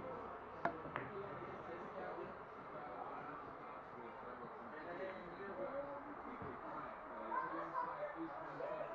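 Billiard balls knock together.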